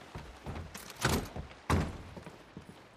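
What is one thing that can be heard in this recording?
A wooden door creaks open and bangs.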